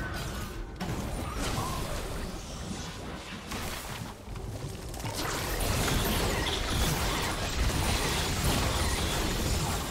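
Magic spell effects whoosh and crackle in a battle.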